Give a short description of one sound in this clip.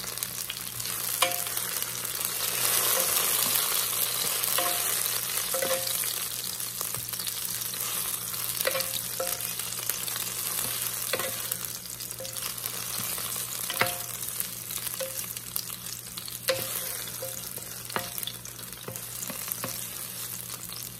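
Onions sizzle gently in hot oil.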